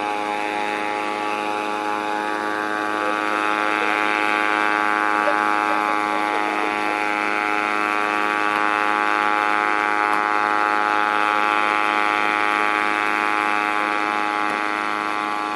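A small helicopter's engine drones steadily overhead.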